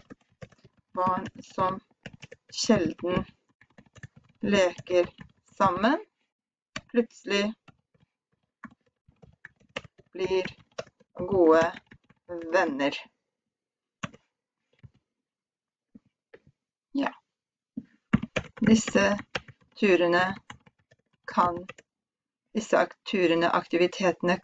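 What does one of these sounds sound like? A young woman speaks slowly and calmly into a close headset microphone, pausing often.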